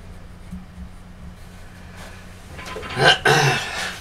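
A clay head is set down on a wooden stand with a soft knock.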